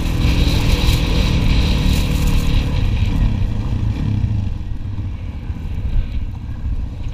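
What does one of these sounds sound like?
Quad bike engines roar close by.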